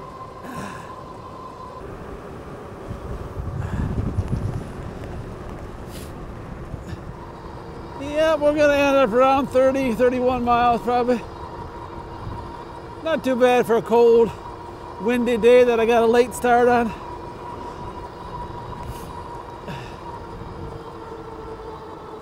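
An electric bike motor whines steadily.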